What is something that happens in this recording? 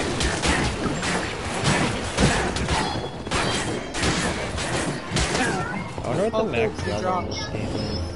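Magic blasts burst and crackle.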